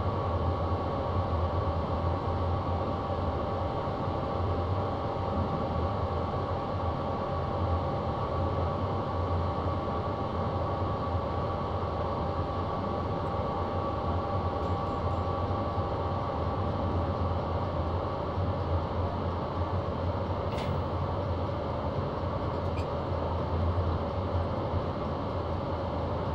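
A train engine hums steadily with a low rumble.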